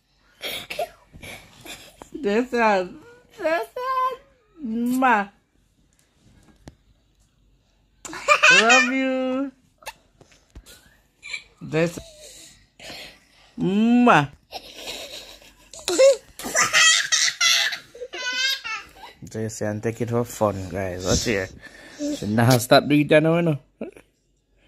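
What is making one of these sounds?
A young girl talks and squeals playfully close by.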